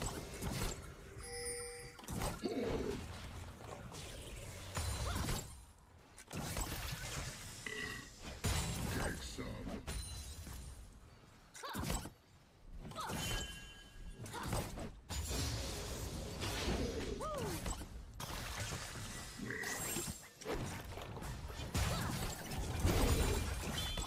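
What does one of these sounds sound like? Game sound effects of spells and hits burst out in quick succession.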